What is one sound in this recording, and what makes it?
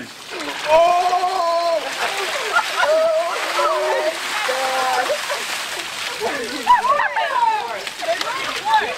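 Young women shriek and scream loudly close by.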